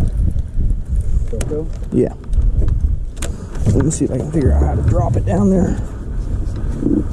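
A fishing reel clicks as it is handled.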